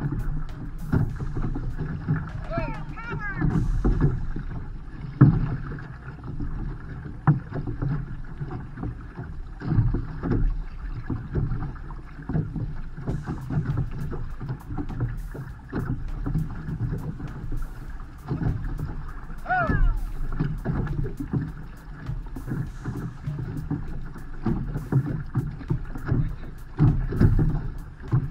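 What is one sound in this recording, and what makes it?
Waves slap against a canoe's hull.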